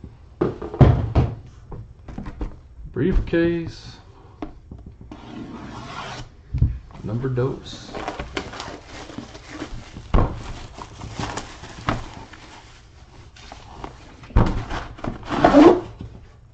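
A cardboard box slides and thumps on a table.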